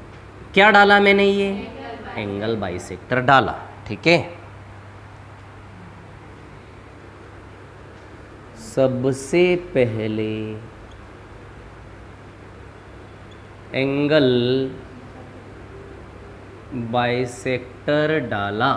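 A man speaks in bursts, explaining in a teaching tone, close by.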